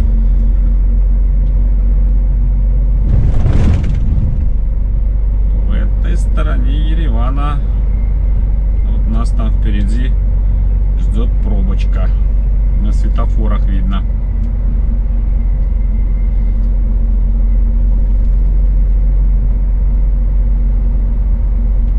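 A vehicle engine hums steadily from inside the cab while driving.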